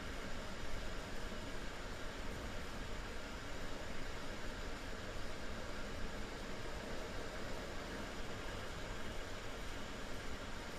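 A train rumbles steadily through a tunnel, heard from inside a carriage.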